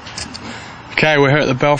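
A man speaks calmly into a handheld microphone outdoors.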